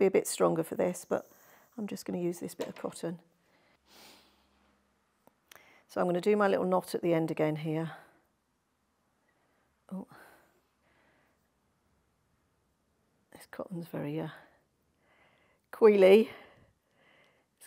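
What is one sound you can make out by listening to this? A middle-aged woman speaks calmly and clearly into a microphone, with pauses.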